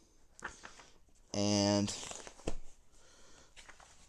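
Paper pages rustle as a sketchbook is flipped.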